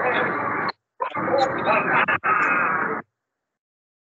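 A man speaks over an online call.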